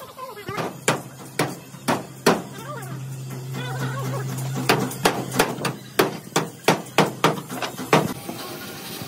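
A hammer bangs repeatedly on sheet metal.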